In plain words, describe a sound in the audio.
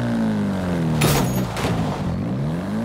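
A car crashes into a beach ball with a sharp burst.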